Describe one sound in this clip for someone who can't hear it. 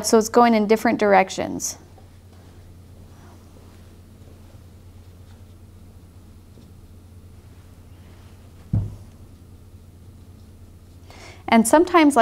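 A brush strokes softly across paper.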